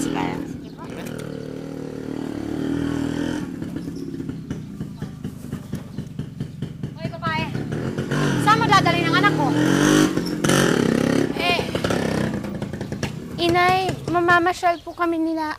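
A motorcycle tricycle with a sidecar drives up and passes close by.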